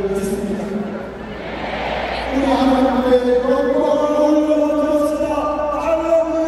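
A huge crowd sings together in unison, echoing across a vast open stadium.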